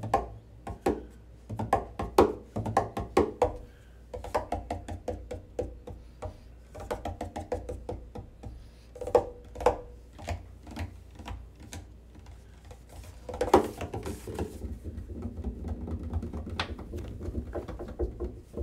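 Hands tap and slap rhythmically on the wooden body of a double bass.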